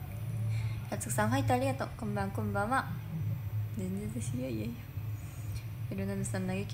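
A young woman speaks softly, close by.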